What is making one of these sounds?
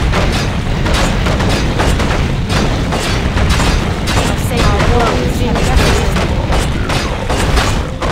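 Game fire spells roar and crackle in a fierce battle.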